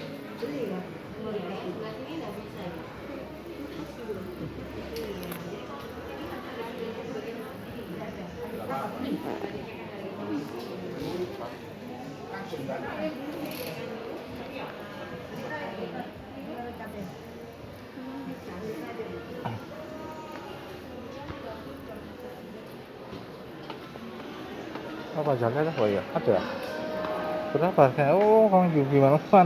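Many people talk quietly all around in a large, echoing room.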